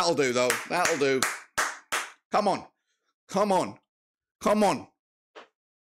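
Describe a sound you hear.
A middle-aged man talks with animation, close to a microphone, in short bursts.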